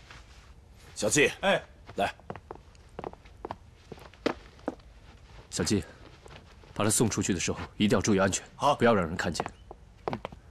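Another middle-aged man gives short instructions.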